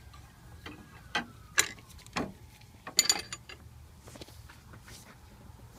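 A metal box-end wrench clicks and clinks against a bolt.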